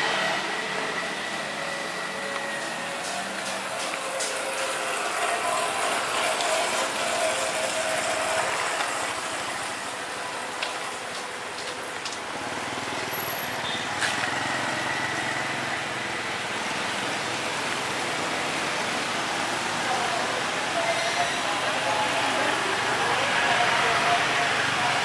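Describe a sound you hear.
Street traffic murmurs throughout.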